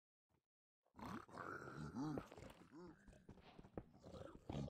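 Game creatures snort and grunt nearby.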